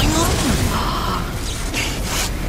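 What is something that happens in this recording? A young boy gasps in surprise close by.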